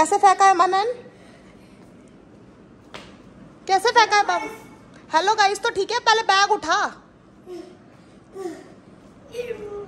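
A young boy speaks loudly and with animation close by.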